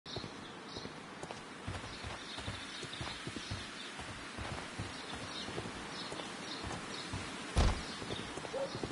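Footsteps fall on cobblestones.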